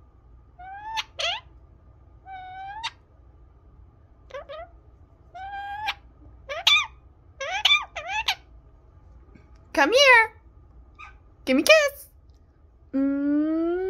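A parrot close by whistles and chatters in short rising calls.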